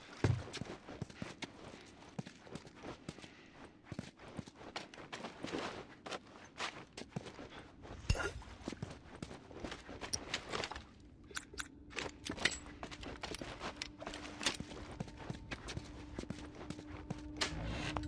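Footsteps crunch over broken glass and debris.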